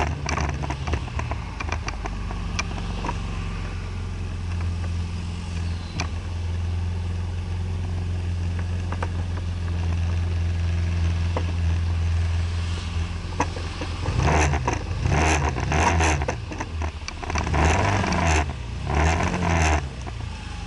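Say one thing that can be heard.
A car engine idles in slow traffic.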